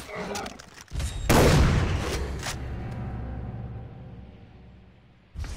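A shotgun fires with a loud blast that rings out.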